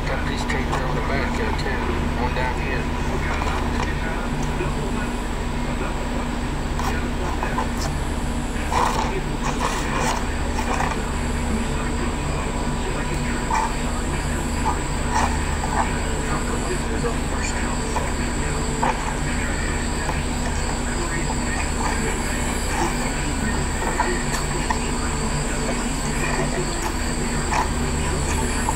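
A man talks calmly, heard through a small loudspeaker.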